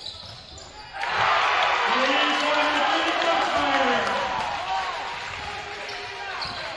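A crowd cheers loudly in an echoing gym.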